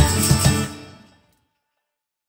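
Acoustic guitars play and quickly fade out.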